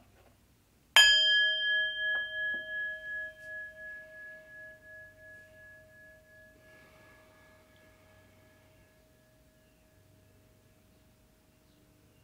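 A singing bowl is struck once and rings with a long, slowly fading tone.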